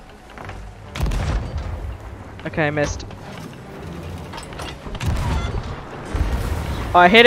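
A cannon fires with loud, deep booms.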